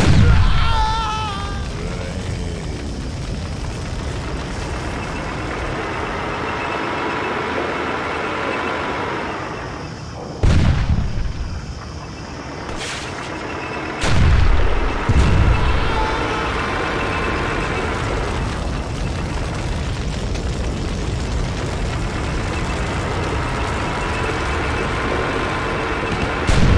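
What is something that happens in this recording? A tank engine rumbles and whines steadily.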